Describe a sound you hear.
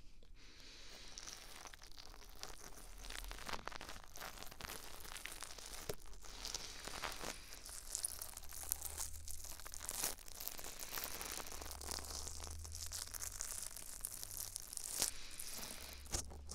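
A thin stick scrapes and scratches softly inside a microphone ear, very close.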